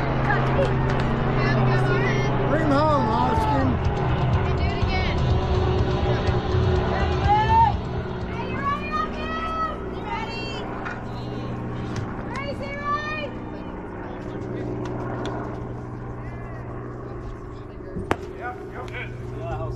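Young men shout and chatter across an open outdoor field.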